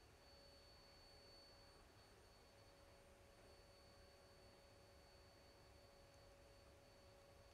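A lip pencil rubs softly against lips.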